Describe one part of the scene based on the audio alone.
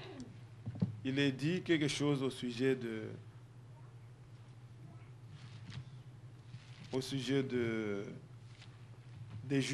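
A man speaks with emphasis through a microphone, pausing between phrases.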